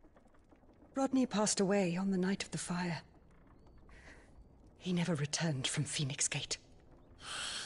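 A young woman speaks softly and sadly, close by.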